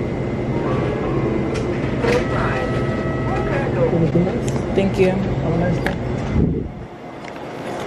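Fabric rubs and rustles against a phone held close.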